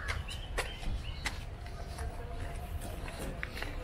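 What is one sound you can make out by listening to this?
Sandals scuff on a paved path.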